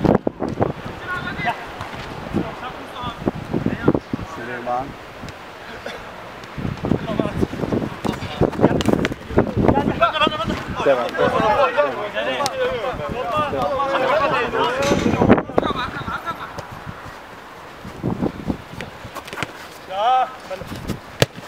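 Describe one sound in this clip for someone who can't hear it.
Young men shout and call out across an outdoor pitch.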